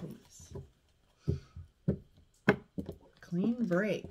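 Cards are laid down on a cloth-covered table with soft taps.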